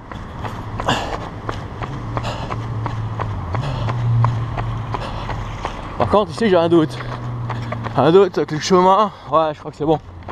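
A motorcycle engine hums steadily and briefly revs higher.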